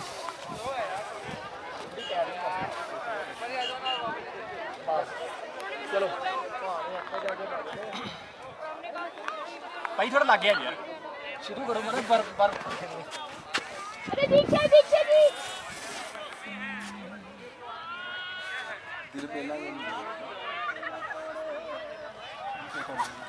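Other young men talk and reply nearby.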